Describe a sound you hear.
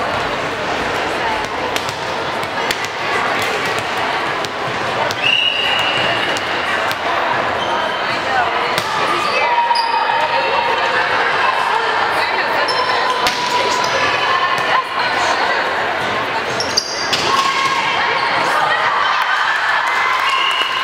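A volleyball is struck with sharp slaps in a large echoing gym.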